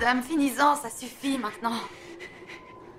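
A young woman sobs and wails close by.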